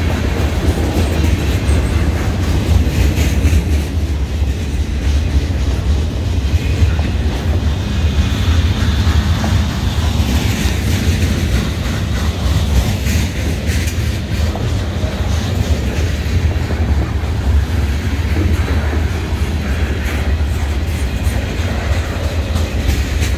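A freight train rolls past close by with a deep rumble.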